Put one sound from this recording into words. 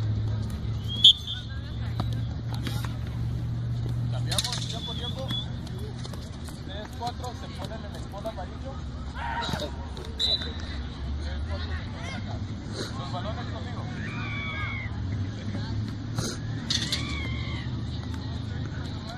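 A football is kicked on artificial turf.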